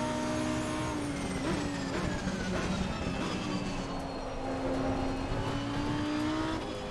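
A racing car engine drops through the gears under braking, then pulls away again.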